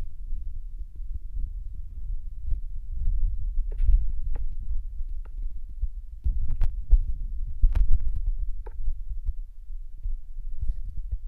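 A young woman talks quietly close to a microphone.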